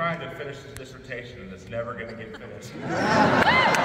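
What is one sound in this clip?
A men's vocal group sings a held chord in close harmony.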